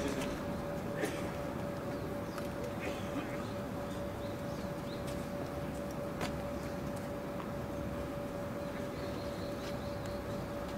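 A tennis ball bounces a few times on a hard court.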